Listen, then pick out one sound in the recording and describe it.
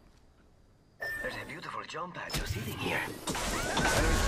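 A jump pad launches a player into the air with a loud whoosh.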